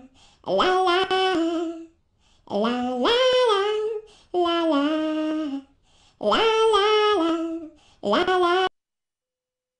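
A young woman sings a cheerful tune up close.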